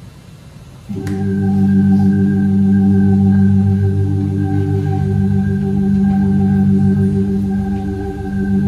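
An electric keyboard holds a steady, sustained chord.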